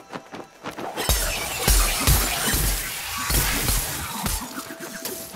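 Weapon blows slash and strike a monster.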